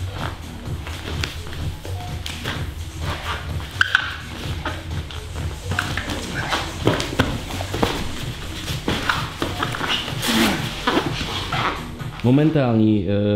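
Bodies thump and scuff on a padded mat.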